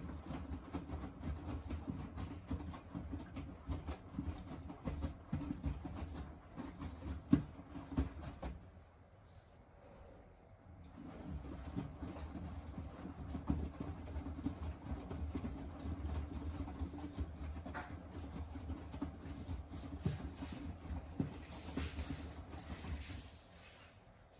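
A washing machine drum tumbles laundry with a low rumble and soft thuds, pausing briefly between turns.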